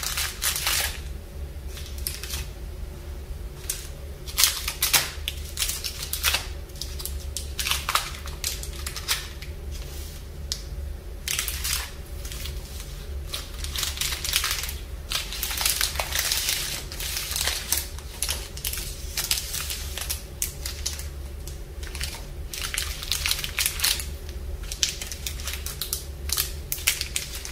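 Plastic wrappers crinkle and rustle close by.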